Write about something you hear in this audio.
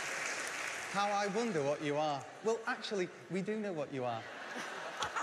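A man speaks cheerfully in a large hall.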